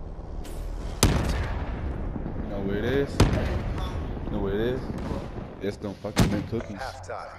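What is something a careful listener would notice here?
Gunshots ring out sharply with a short echo.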